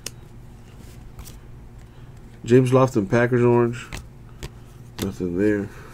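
Trading cards rustle and tap in a hand.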